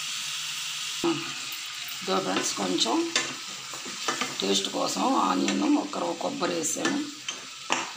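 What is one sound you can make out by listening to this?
A metal ladle stirs thick sauce and scrapes against a pan.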